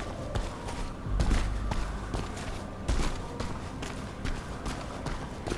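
Footsteps thud on stone as a character runs.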